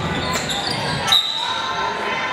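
A referee blows a sharp whistle.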